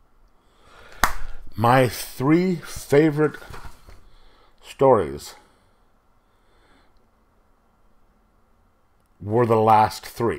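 A middle-aged man speaks close into a microphone in short bursts, with pauses.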